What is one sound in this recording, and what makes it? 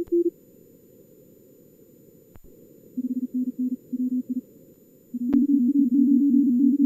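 Morse code tones beep in quick bursts of short and long notes.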